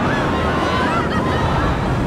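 A crowd of people cheers and screams nearby.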